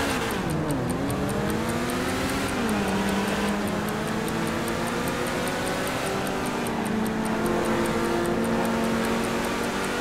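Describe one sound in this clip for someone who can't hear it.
A sports car engine roars as the car accelerates, rising in pitch through the gears.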